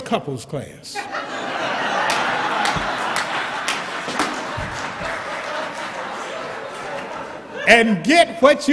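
A crowd laughs loudly.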